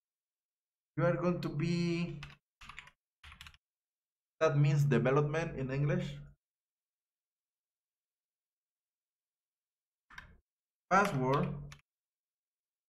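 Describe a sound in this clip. A man speaks calmly and close to a microphone, in short bursts with pauses.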